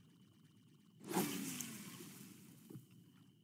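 A fishing rod swishes as a line is cast out.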